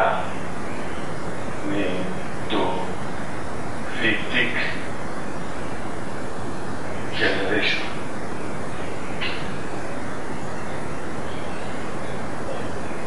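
A marker squeaks and scratches across a whiteboard.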